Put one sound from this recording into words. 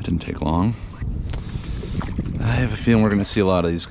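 A fish splashes in the water close by.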